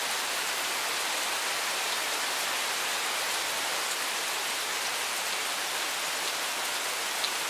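Steady rain patters on leaves and gravel outdoors.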